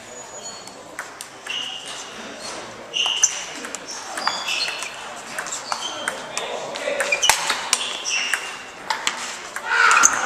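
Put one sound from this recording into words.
A table tennis ball clicks back and forth off bats and the table in an echoing hall.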